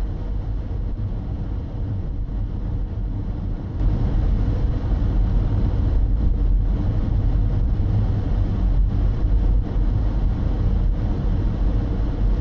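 Tyres rumble low on a road.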